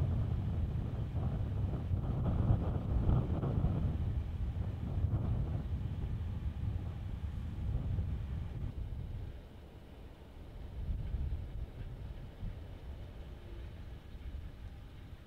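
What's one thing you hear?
A car engine rumbles low and steady.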